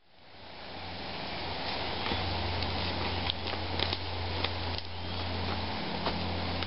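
Footsteps crunch through leaves and twigs on the forest floor.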